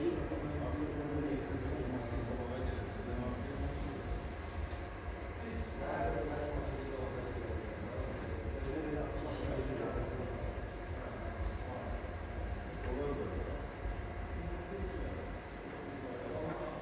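Men talk at a distance in a large echoing hall.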